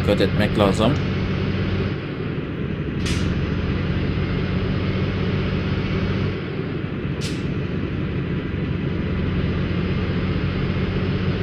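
A truck engine hums steadily as the truck drives slowly.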